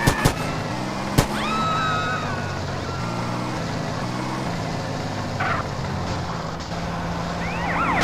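A car engine roars steadily as the car speeds along.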